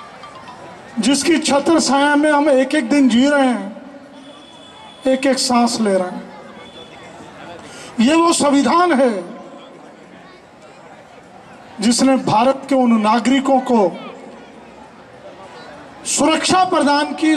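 An elderly man speaks forcefully into a microphone, heard through loudspeakers in bursts with pauses.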